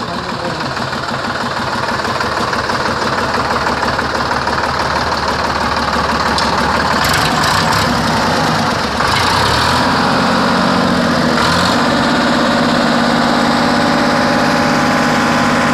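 A diesel tractor engine idles with a steady, rattling chug close by.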